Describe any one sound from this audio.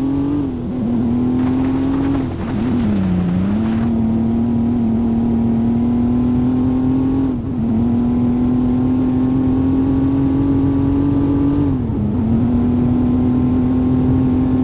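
A car engine hums steadily, rising in pitch as the car speeds up and dropping briefly as the gears shift.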